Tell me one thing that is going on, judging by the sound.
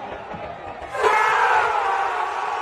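A large stadium crowd erupts in loud cheering.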